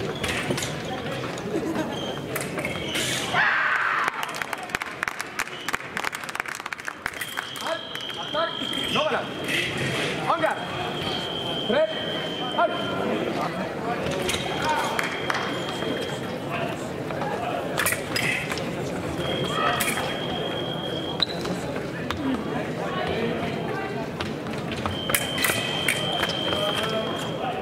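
Fencers' feet stamp and shuffle on a metal strip in a large echoing hall.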